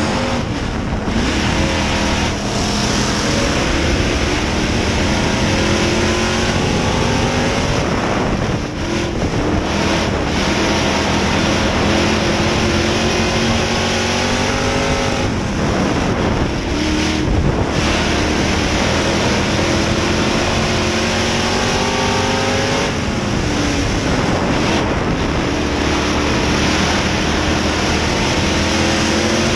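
A race car engine roars loudly from inside the cab, rising and falling in pitch as it speeds up and slows down.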